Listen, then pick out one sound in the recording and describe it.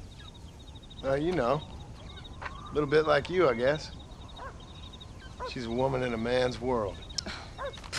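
A man answers in a calm, low voice, close by.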